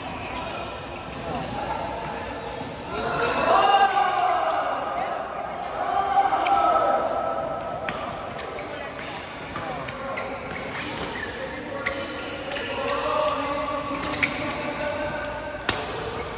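Men and women talk and call out across a large echoing hall.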